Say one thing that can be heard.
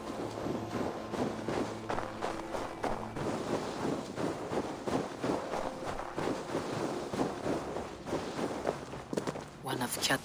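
Footsteps crunch quickly through deep snow.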